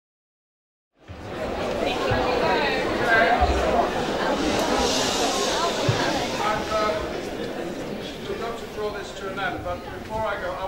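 A large audience claps in an echoing hall.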